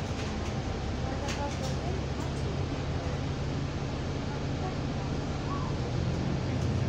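A bus engine hums and rumbles steadily.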